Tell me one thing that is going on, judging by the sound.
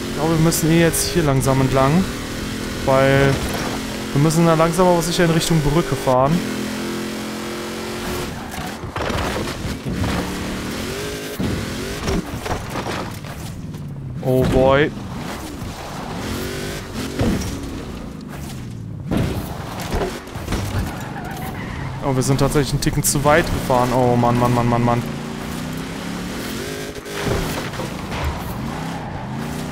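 A truck engine revs and roars, rising and falling in pitch.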